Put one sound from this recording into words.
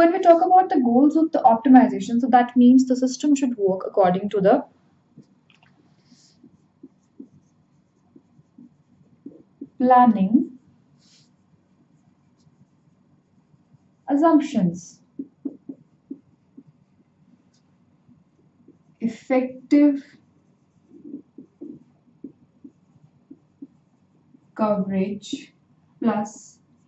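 A young woman speaks calmly and clearly, close to a microphone, pausing often.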